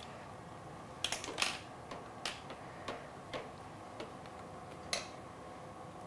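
Dishes and kitchen utensils clink and clatter on a counter.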